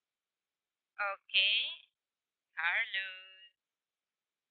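A young woman speaks briefly over an online call.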